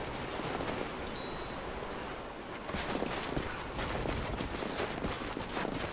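Footsteps crunch on snowy ground.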